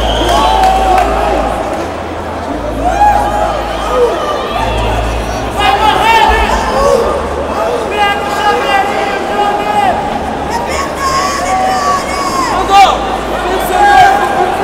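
A large crowd shouts and cheers in an echoing arena.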